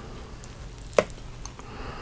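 A metal fork clinks sharply against a plate close by.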